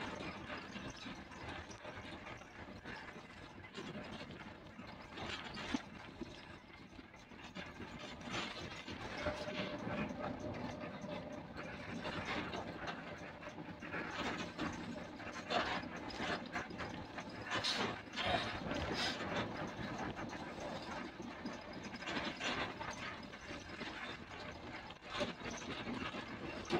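Tyres roll on asphalt beneath a moving bus.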